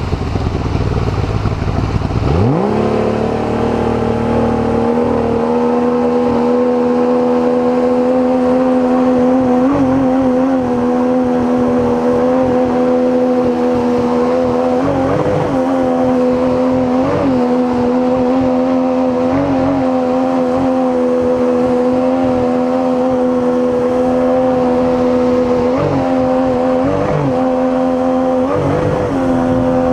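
River water rushes and splashes past a boat.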